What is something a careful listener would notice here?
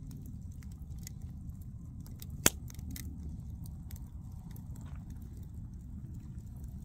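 A wood campfire crackles and pops.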